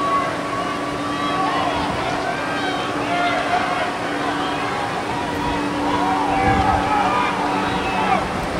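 Young men shout to each other across an outdoor field in the distance.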